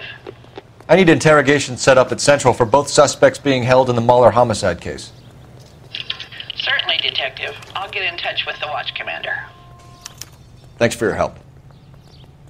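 A man speaks calmly and clearly into a telephone.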